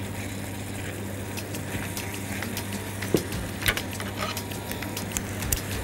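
A wooden spatula scrapes and stirs food in a pan.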